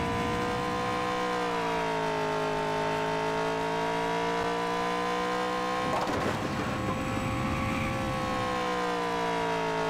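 A video game race car engine roars at high speed.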